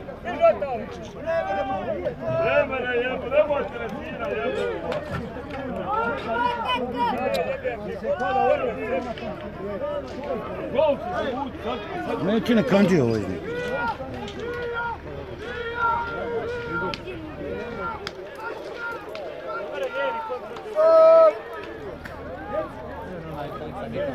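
A crowd of people outdoors chatters and shouts excitedly, close by.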